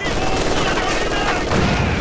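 Rifles and machine guns fire in rapid bursts.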